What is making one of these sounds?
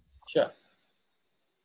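A man speaks briefly into a computer microphone.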